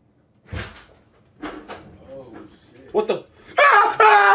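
Young men talk nearby.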